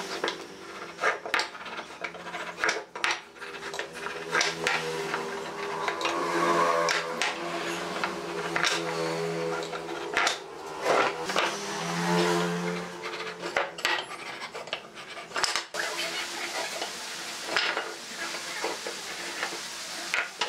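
Wooden boards knock and slide on a wooden workbench.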